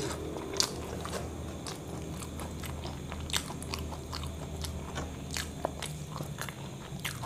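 A hand crinkles a paper food box close to a microphone.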